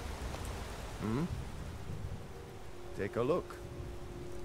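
A man speaks briefly and casually at close range.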